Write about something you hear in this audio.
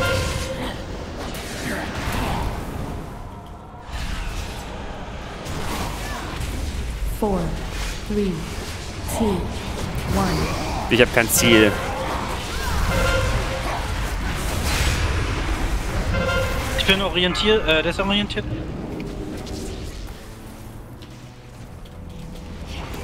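Magic spells crackle and whoosh in quick bursts.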